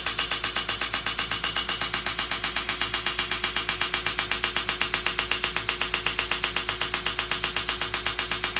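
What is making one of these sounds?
A suction machine hums steadily.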